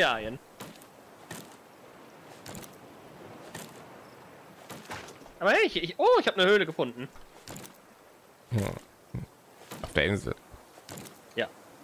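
An axe chops into a tree trunk with dull knocks.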